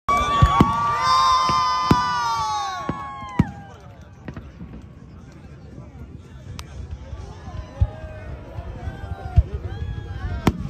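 Fireworks bang loudly outdoors.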